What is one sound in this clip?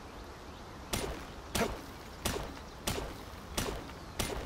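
An axe strikes rock repeatedly with sharp knocks.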